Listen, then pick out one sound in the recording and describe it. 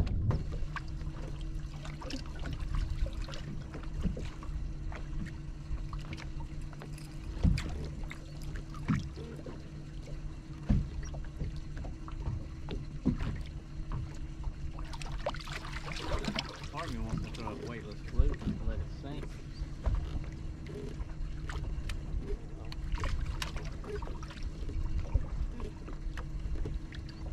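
Small waves lap against a boat's hull.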